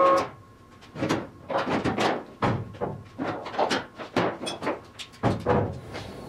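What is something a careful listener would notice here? Metal chains clink and clank.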